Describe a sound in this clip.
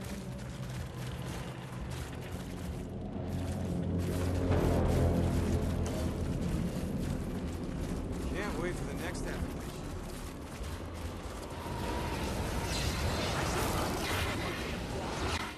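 Footsteps crunch through snow at a run.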